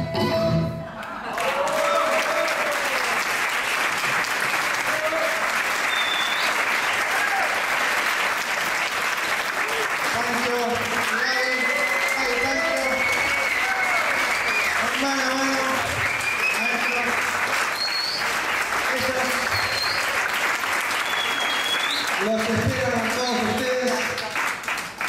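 An audience applauds and cheers in a large room.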